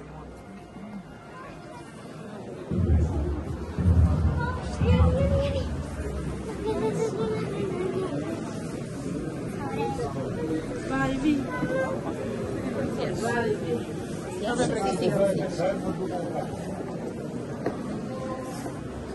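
A crowd of men and women chatters and calls out close by, outdoors.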